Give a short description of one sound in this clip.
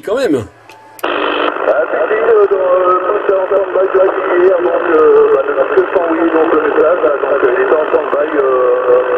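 A voice talks through a crackly radio loudspeaker.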